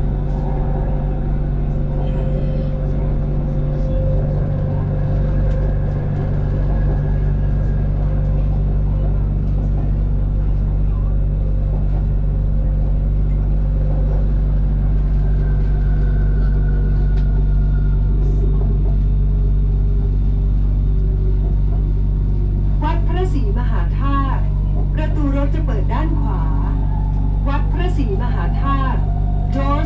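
A train rumbles and hums steadily as it rolls along.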